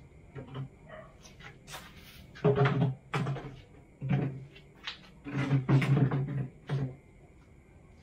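Plastic chairs scrape and clatter across a concrete floor.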